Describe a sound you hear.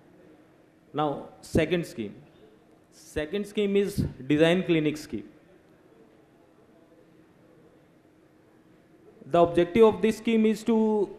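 A young man speaks into a microphone in bursts, with pauses between phrases.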